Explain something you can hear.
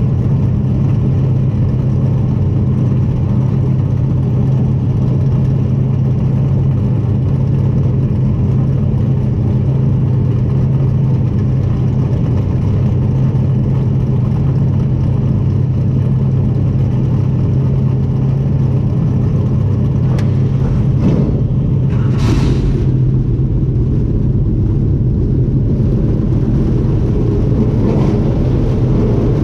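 A race car engine idles with a loud, steady low rumble.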